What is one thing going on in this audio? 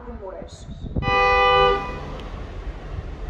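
A train horn sounds loudly for about a second.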